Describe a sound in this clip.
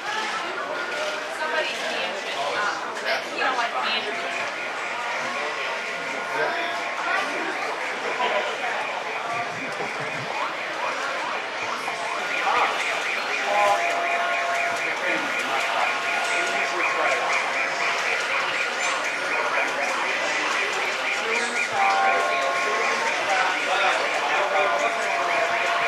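A crowd of shoppers chatters in a large, echoing hall.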